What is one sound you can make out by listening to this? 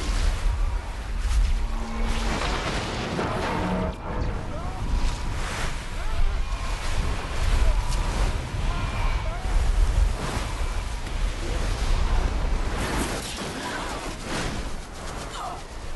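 Rough flood water surges and crashes.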